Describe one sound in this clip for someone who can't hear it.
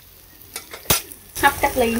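A metal lid clanks on a pot.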